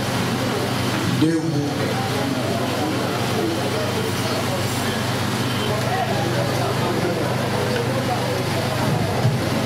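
A man speaks into a microphone, heard through loudspeakers in a reverberant room.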